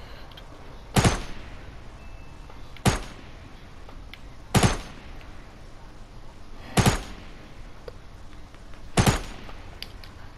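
A rifle fires single loud shots at a steady pace.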